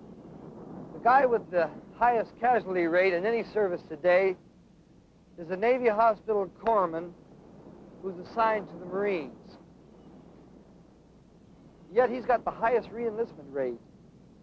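A man talks clearly and with feeling, close by.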